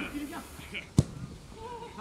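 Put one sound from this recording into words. A football thuds off a foot.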